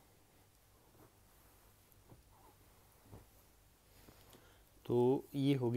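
Silky fabric rustles softly as a hand handles it.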